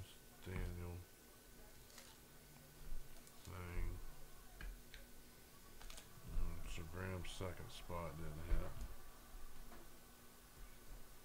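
Card packs rustle and click as hands handle them.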